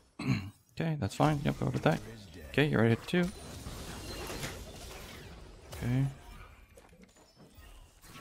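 Game sound effects whoosh and clash.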